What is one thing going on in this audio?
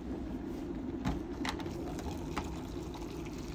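A plastic kettle lid clicks and knocks as it is lifted off.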